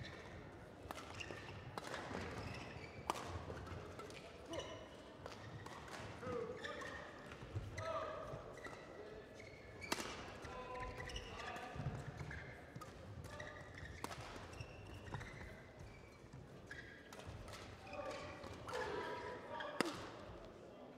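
A shuttlecock is struck sharply with rackets, back and forth.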